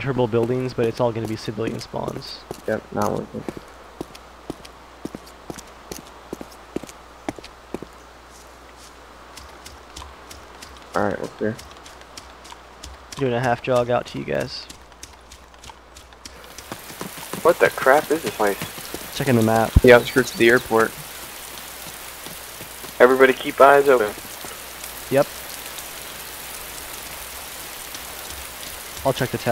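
Footsteps patter quickly on grass.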